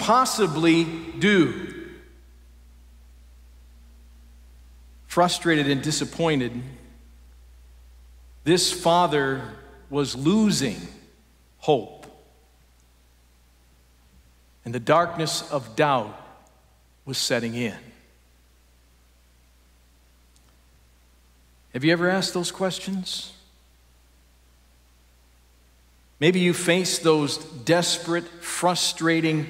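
A man speaks calmly with pauses, heard through a microphone in a large echoing hall.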